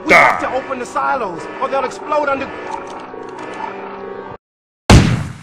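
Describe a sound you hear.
A man speaks with urgency.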